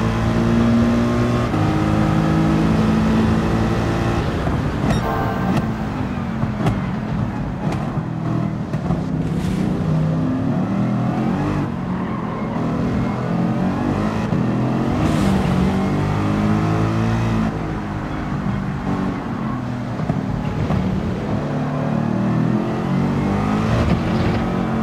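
A racing car engine roars loudly, its pitch rising and falling as it speeds up and slows down.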